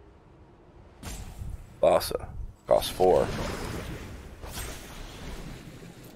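A magical whooshing effect swells and rings out.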